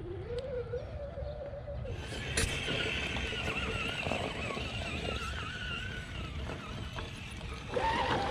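A small electric motor whines, rising and falling in pitch.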